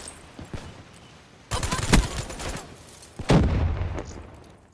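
Gunshots ring out in short, loud bursts.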